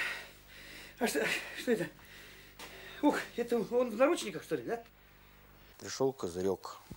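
A middle-aged man speaks nearby in a firm, pressing voice.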